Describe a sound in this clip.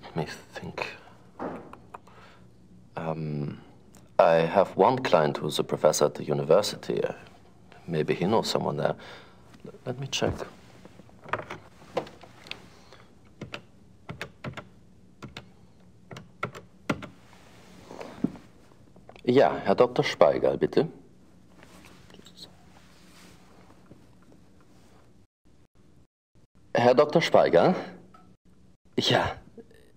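A second man answers in a relaxed voice.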